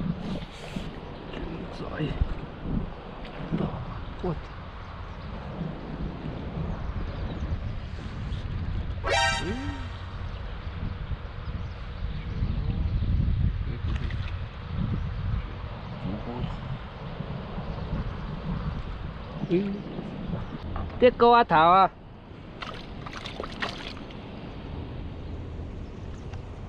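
A shallow river flows and ripples over stones.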